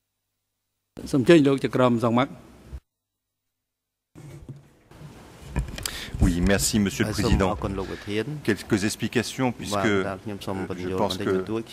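A man speaks calmly over a microphone in a large room.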